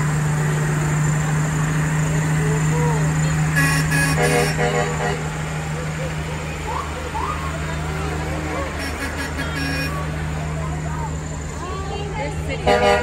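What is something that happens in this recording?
A truck engine rumbles steadily close by as it rolls past.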